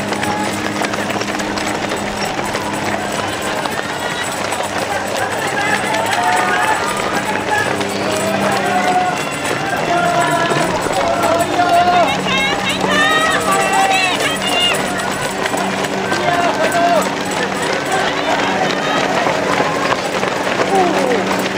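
Many running footsteps patter on pavement.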